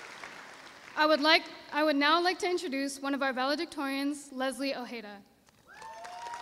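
A young woman speaks calmly into a microphone in a large echoing hall.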